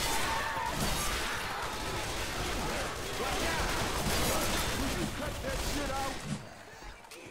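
Rapid gunfire blasts.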